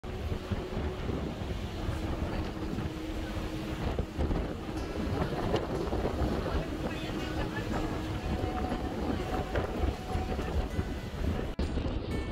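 A boat engine rumbles steadily.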